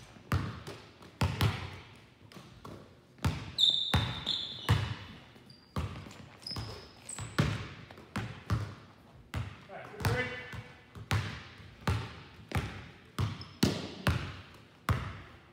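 Basketballs bounce on a wooden floor, echoing through a large hall.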